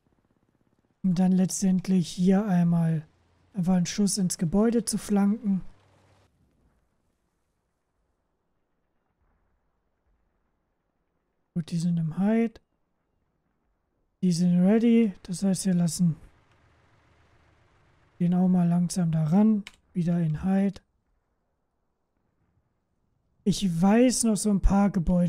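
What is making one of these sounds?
A young man talks calmly and closely into a microphone, in bursts with pauses.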